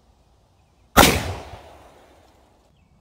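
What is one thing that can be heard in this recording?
A shotgun fires once with a loud blast that echoes away.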